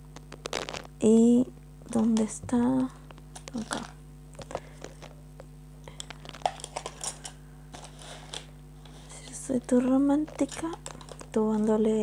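A young woman speaks softly and close into a microphone, in short bursts.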